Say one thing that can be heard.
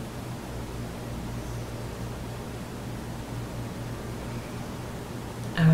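A man snores softly nearby.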